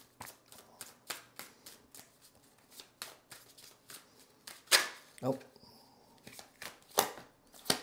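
Playing cards riffle and snap as they are shuffled close by.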